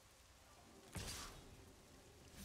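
A soft whooshing game effect sounds.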